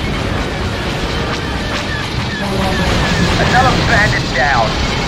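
A spacecraft engine hums steadily and low.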